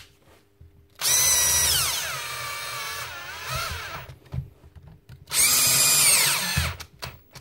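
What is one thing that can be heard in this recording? A cordless drill whirs in loud bursts, winding up and slowing down.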